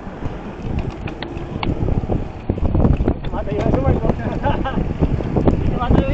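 Wind buffets the microphone as a bicycle picks up speed.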